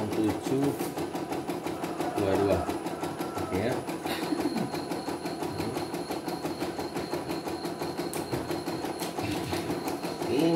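An embroidery machine stitches with a fast, steady mechanical rattle.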